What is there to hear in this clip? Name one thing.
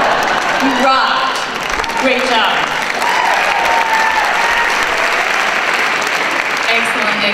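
A woman speaks with animation into a microphone in a large hall.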